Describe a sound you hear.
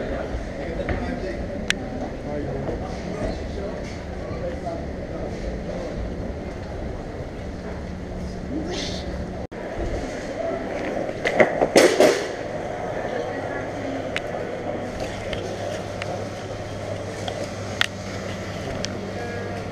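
A crowd murmurs in a busy echoing hall.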